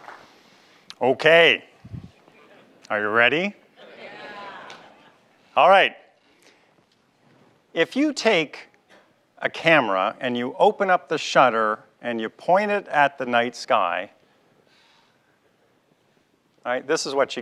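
A man speaks to an audience through a microphone, with pauses.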